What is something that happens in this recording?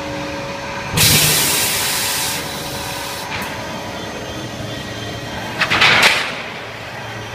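A pneumatic gripper hisses with bursts of air.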